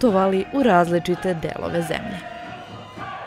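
A folk band plays a lively tune.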